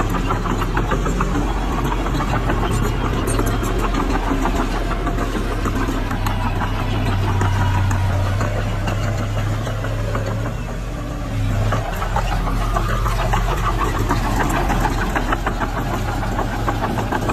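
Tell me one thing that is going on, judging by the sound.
A small bulldozer's diesel engine rumbles steadily close by.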